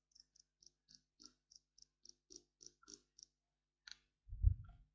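Soft game menu clicks tick in quick succession.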